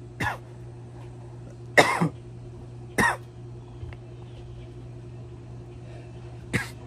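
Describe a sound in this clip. A young man coughs sharply close by.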